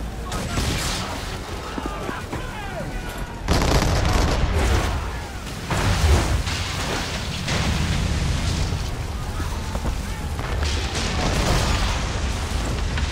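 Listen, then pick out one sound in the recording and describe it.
Waves rush and splash against a ship's hull.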